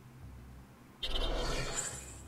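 A card game plays a short whooshing sound effect as a card is played.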